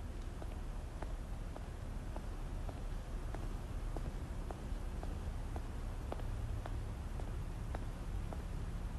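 Hard shoes tap slowly on a wooden floor.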